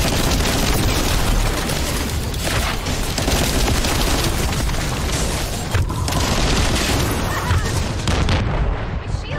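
Energy weapons crackle and buzz.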